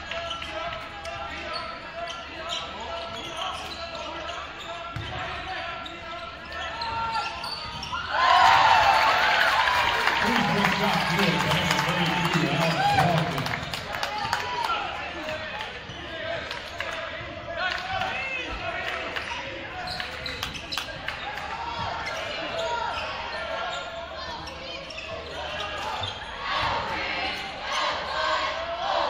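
A crowd murmurs in the stands.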